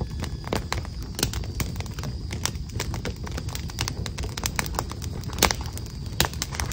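Keyboard keys click quickly and unevenly as someone types close by.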